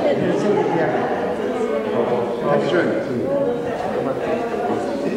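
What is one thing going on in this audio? A crowd of men and women chat nearby, voices overlapping.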